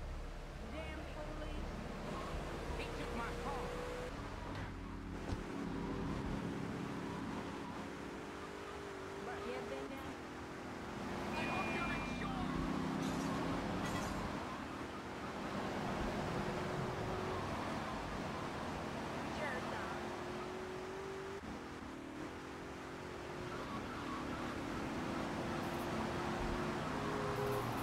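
A car engine hums and revs steadily as the car drives along.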